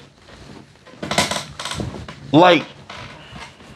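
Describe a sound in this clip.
A man speaks close to a microphone in a low, menacing voice.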